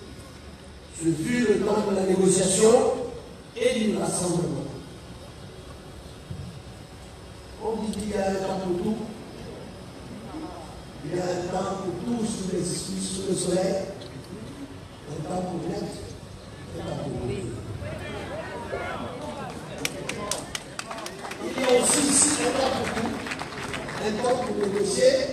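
A man speaks forcefully into a microphone over loudspeakers outdoors, in bursts with pauses.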